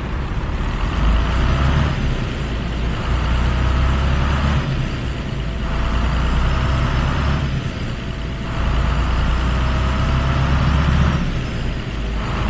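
A truck engine revs up and eases off several times as it pulls away.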